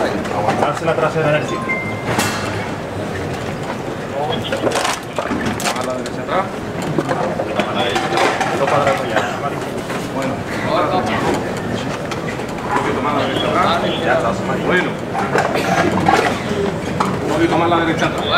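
A large crowd murmurs and talks all around outdoors.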